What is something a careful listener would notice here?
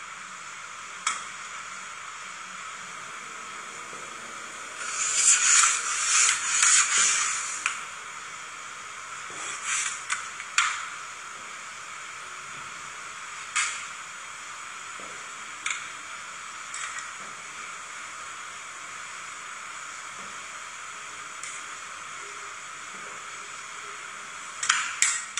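Metal spatulas tap sharply against a metal plate.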